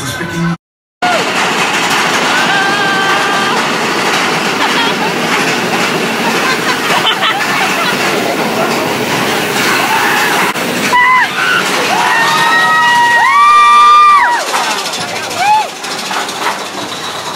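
A roller coaster rumbles and rattles along its track.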